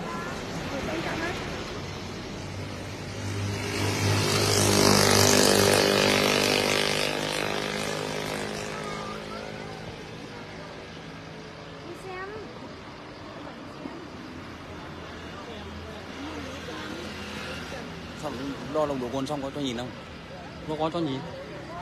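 Men talk at close range.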